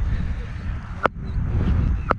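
A cricket bat strikes a ball with a sharp crack.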